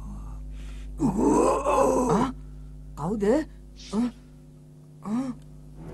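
A young man answers in a strained voice.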